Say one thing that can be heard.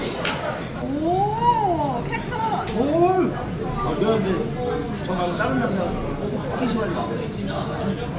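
Several women chat and laugh together.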